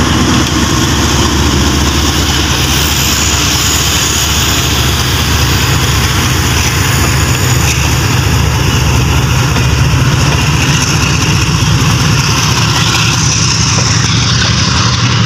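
A diesel locomotive rumbles loudly as it passes close by.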